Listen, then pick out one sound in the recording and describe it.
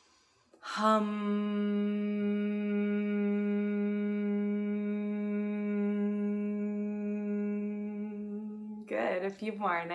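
A young woman hums a long, steady note.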